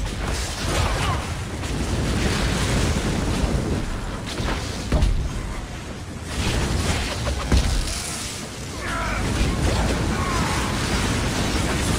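Flames roar and whoosh.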